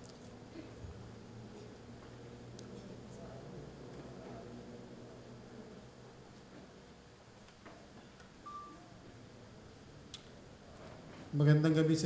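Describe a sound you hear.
A man speaks steadily into a microphone, heard over loudspeakers in an echoing hall.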